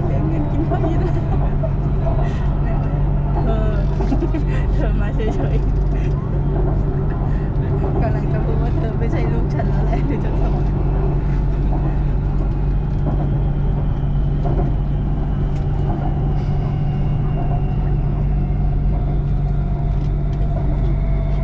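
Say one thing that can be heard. A train hums and rumbles steadily along an elevated track.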